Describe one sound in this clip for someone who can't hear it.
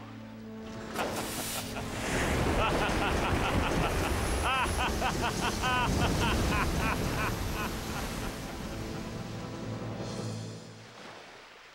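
Water rushes and sprays as a boat speeds across the sea.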